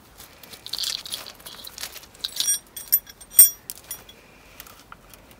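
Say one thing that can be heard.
Metal parts clink and rattle close by.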